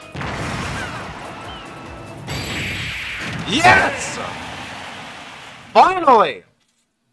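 Video game sound effects whoosh and swell.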